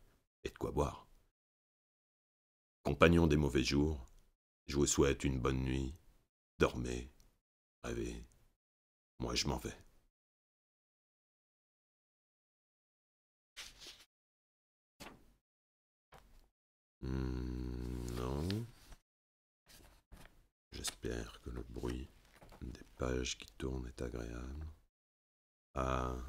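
A man speaks calmly and close to a microphone, with long pauses.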